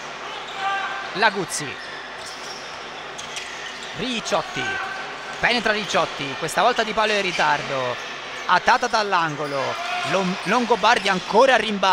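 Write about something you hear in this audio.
Sneakers squeak sharply on a hardwood court in an echoing hall.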